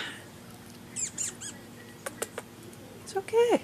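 A small dog licks and crunches a treat from a hand.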